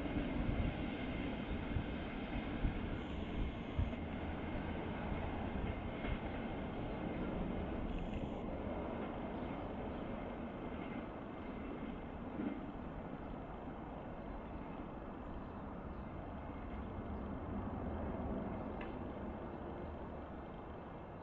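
A passenger train rumbles away along the tracks, slowly fading.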